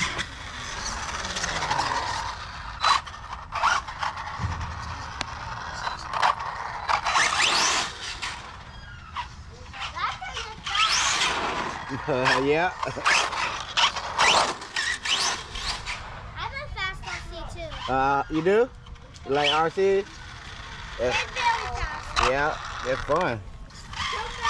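Toy car tyres scrub and skid on rough ground.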